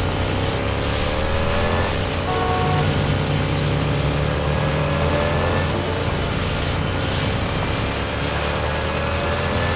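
A motorcycle engine roars steadily at high speed.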